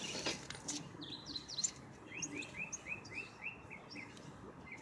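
A small bird chirps repeatedly with short, quick calls close by.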